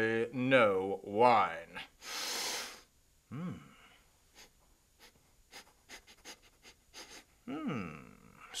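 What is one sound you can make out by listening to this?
A middle-aged man speaks theatrically close by, his voice swooping up and down.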